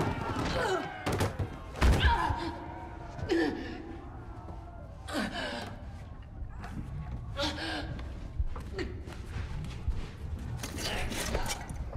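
A young woman pants and gasps in fear close by.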